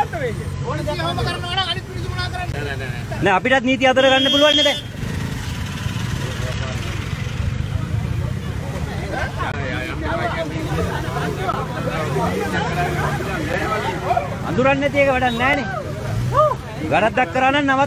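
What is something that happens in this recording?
Men talk and argue loudly nearby, outdoors.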